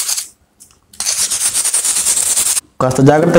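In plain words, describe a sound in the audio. Sandpaper rubs briskly against a metal blade.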